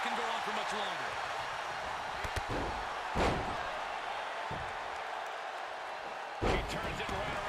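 A large crowd cheers steadily.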